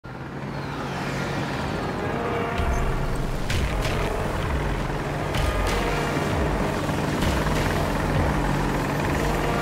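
A helicopter engine whines and roars.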